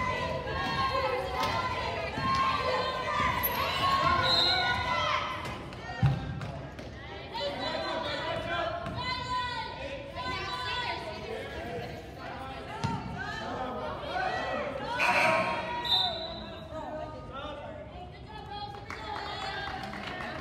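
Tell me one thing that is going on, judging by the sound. Wheelchair tyres squeak on a wooden court.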